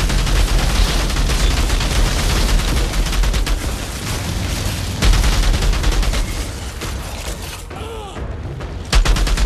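Heavy blows and explosions thud.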